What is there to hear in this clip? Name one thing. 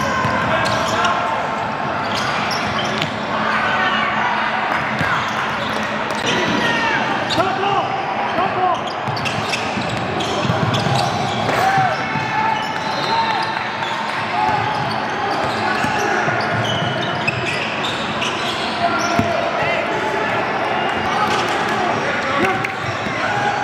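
Sneakers squeak sharply on a hard court floor.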